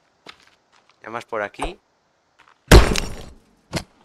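A wooden stick swings and strikes with a heavy thud.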